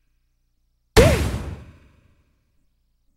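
An explosion bursts with a deep boom and quickly fades.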